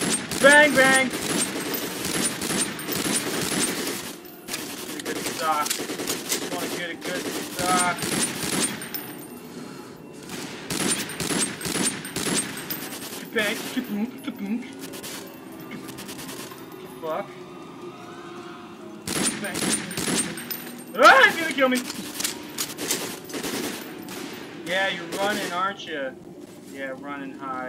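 A rifle fires shots in a row indoors.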